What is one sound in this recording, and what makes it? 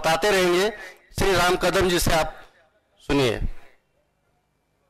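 An elderly man speaks loudly through a microphone and loudspeakers, with emphasis.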